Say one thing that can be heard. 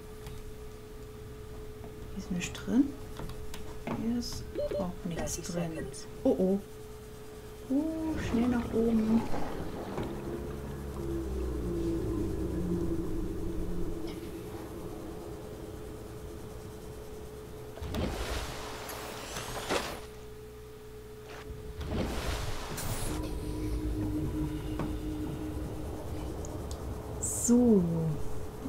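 A small submersible's motor hums steadily underwater.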